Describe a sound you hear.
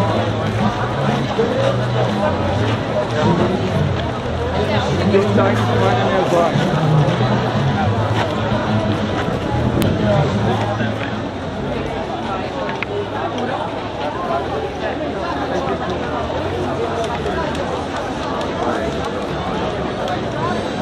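A large crowd chatters on all sides outdoors.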